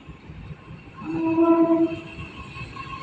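A train horn sounds a loud chord nearby.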